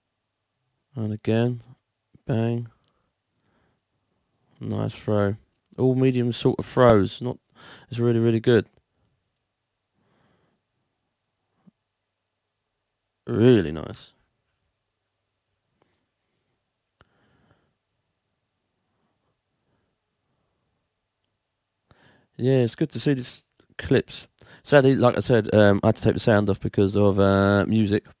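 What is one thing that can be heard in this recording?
A young man talks with animation through a close microphone, in short bursts.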